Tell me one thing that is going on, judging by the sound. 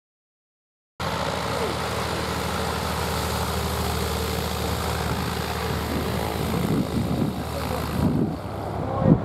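A small propeller plane's engine roars close by as it taxis past.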